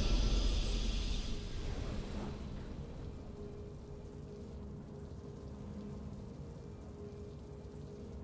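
Triumphant game music plays loudly at first, then settles into a soft, steady hum.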